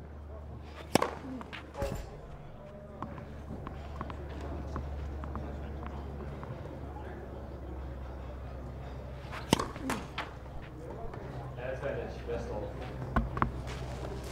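A tennis ball is struck hard with a racket, with sharp pops.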